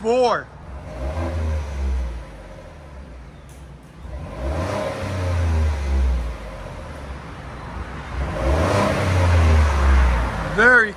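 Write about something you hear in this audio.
A truck engine revs loudly through its exhaust in repeated bursts, then settles back to idle.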